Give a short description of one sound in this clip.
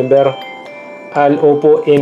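A phone plays a short startup chime.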